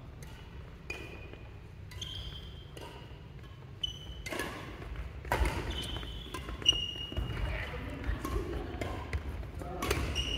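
Badminton rackets strike a shuttlecock with sharp pops in a large echoing hall.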